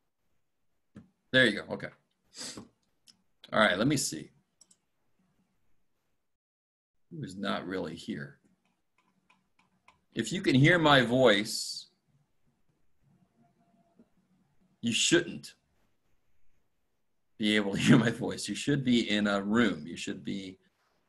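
A middle-aged man speaks calmly into a microphone, heard as if over an online call, with pauses.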